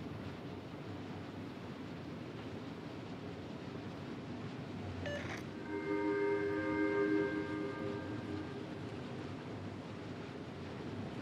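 Ocean waves wash steadily around a moving warship.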